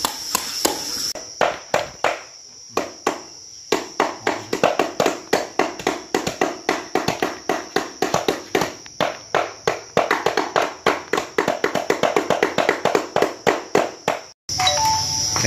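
A cleaver chops meat on a wooden board with quick, repeated thuds.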